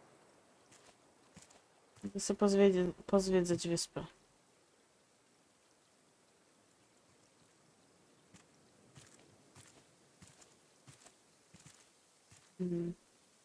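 Footsteps tread softly through grass.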